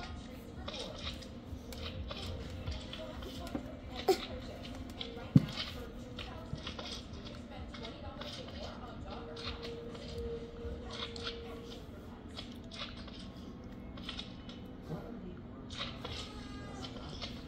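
A child's fingertips tap on a tablet touchscreen.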